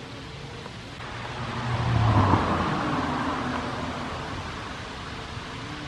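A young man talks quietly close by.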